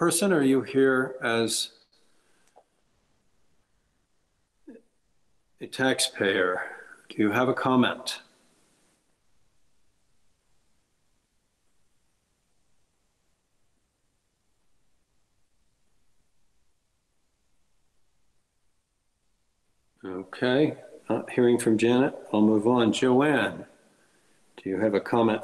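An older man speaks calmly over an online call, with long pauses.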